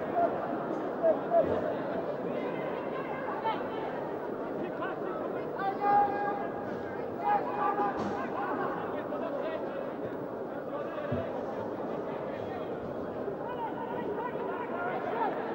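A large crowd cheers and chants across an open stadium.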